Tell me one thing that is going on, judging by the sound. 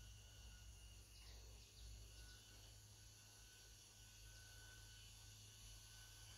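A wooden hive frame scrapes as it is lifted from a beehive.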